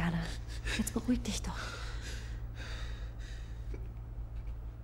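A young woman speaks softly and comfortingly.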